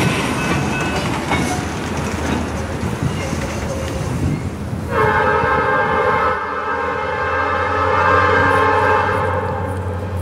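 A diesel locomotive engine rumbles low.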